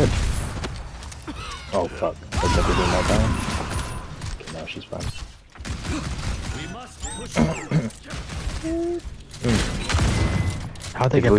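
Gunfire and blasts ring out in a video game battle.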